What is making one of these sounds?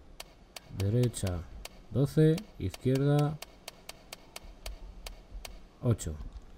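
A safe's dial clicks as it turns.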